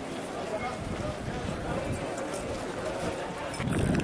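A crowd of men murmurs and talks outdoors.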